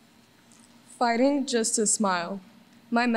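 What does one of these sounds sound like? A young girl reads aloud into a microphone in an echoing hall.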